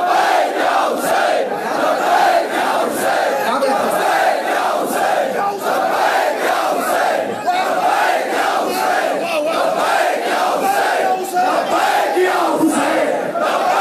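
A large crowd of men chants loudly together in a rhythmic beat.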